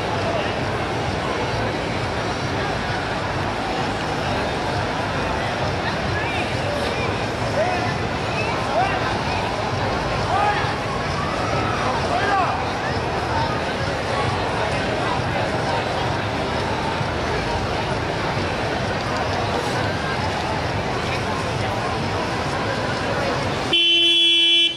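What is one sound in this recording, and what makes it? A large crowd of people chatters and shouts outdoors.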